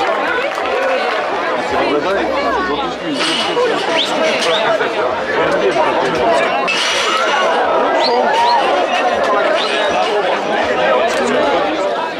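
A crowd of men and women shouts and cheers excitedly close by.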